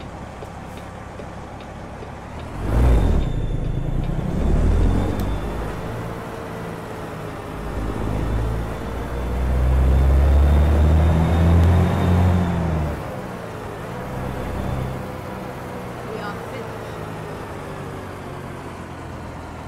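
A heavy diesel truck engine drones and revs, heard from inside the cab.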